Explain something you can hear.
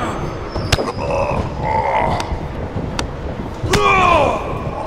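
Blows land with sharp, heavy thuds.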